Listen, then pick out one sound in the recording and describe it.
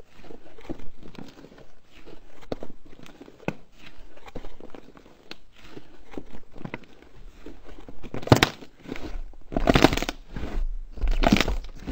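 Sticky slime squelches and crackles as hands stretch and squeeze it.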